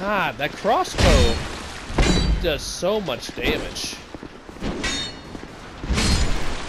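Heavy blades swing and strike with loud thuds.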